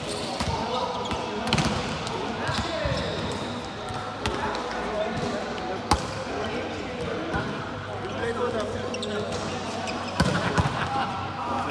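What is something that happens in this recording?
Young men and women call out to each other nearby.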